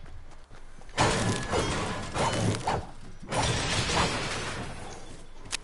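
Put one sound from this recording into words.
A pickaxe strikes metal with loud clangs.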